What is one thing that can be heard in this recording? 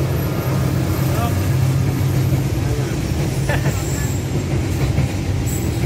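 A diesel locomotive engine drones loudly.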